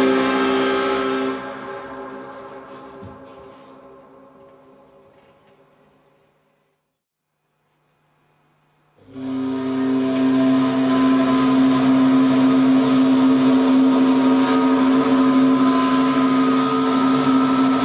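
A steady droning tone plays through loudspeakers, fades to silence, then returns loudly.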